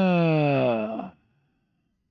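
A middle-aged man speaks into a headset microphone, his voice falling in pitch.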